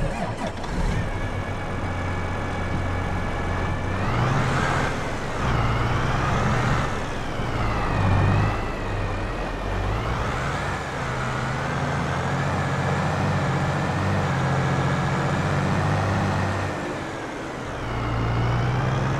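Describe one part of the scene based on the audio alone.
A tractor engine drones steadily and rises and falls in pitch as it works.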